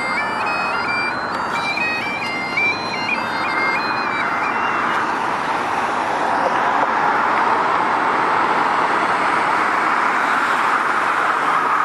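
Traffic rolls past steadily on a nearby road.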